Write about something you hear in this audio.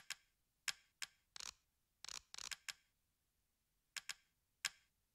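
Keys click sharply on a keyboard.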